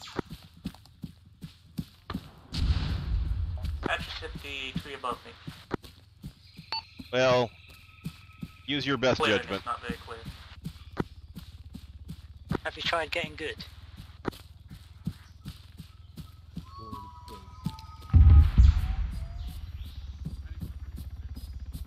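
Footsteps rustle quickly through grass and undergrowth.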